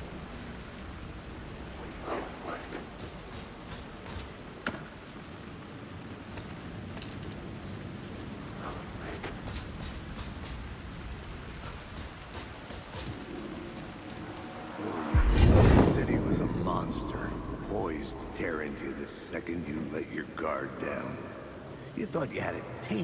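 Heavy rain falls steadily all around.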